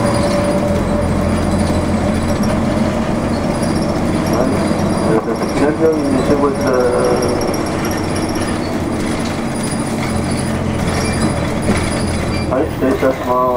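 A vehicle engine rumbles steadily while driving along a street.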